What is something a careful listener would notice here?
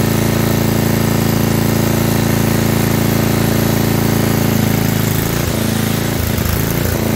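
A generator engine runs with a steady, loud drone.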